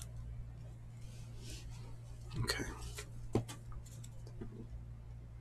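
Cards rustle as a stack is handled.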